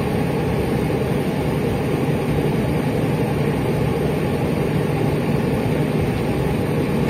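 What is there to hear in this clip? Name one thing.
An inline six-cylinder diesel city bus engine runs, heard from inside the bus.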